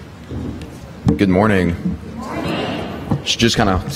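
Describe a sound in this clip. A young man speaks into a microphone.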